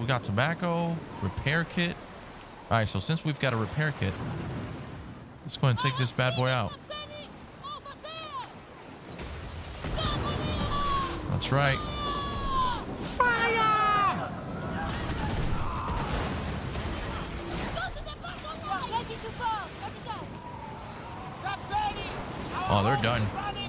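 Rough waves crash and surge around a sailing ship in a storm.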